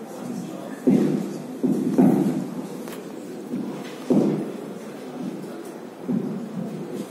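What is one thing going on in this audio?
A man lectures through a microphone and loudspeakers in an echoing hall.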